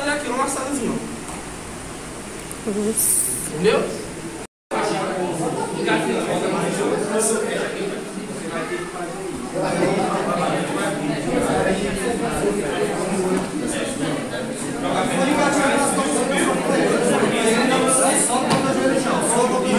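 Several men talk and chatter in a room with some echo.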